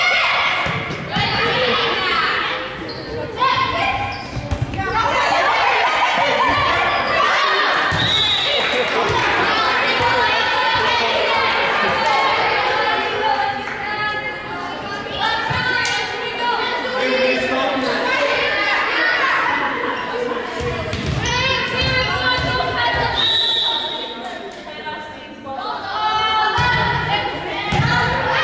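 Young women shout and call out to each other in a large echoing gym.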